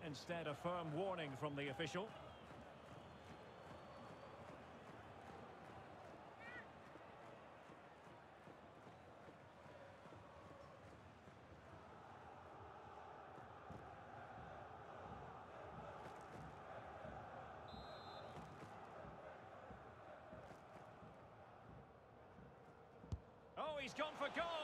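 A large crowd murmurs steadily.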